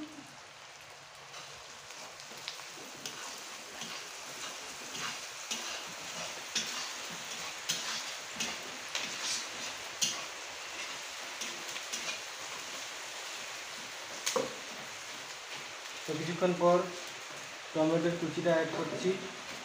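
A metal spatula scrapes and clatters in a wok.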